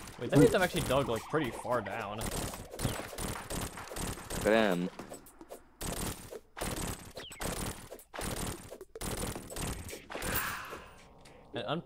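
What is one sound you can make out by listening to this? Magic weapon blasts zap and hit in quick bursts.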